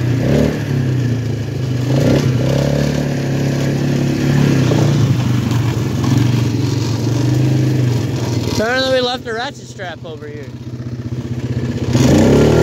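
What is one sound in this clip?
An off-road quad engine drones steadily close by, easing off briefly before picking up again.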